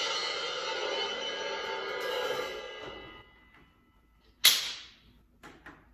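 Hand cymbals crash together and ring out.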